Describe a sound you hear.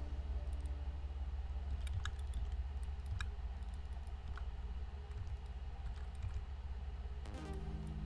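Short game sound effects click and chime now and then.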